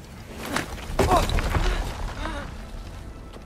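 A boy gasps sharply.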